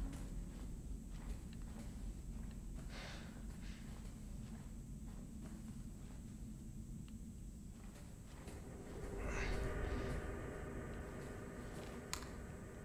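Slow footsteps tread softly on a hard floor.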